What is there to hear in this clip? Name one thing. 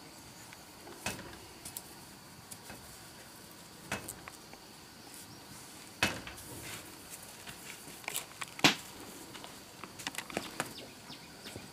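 A plastic hose knocks and scrapes against the ground.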